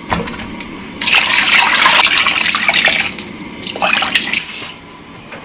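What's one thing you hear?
Water pours into a metal pot, splashing.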